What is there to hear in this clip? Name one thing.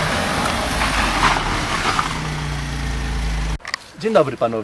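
A car engine hums as the car drives along.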